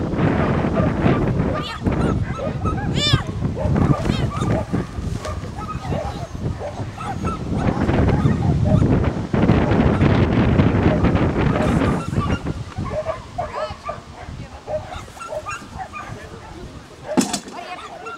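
A woman calls out commands outdoors.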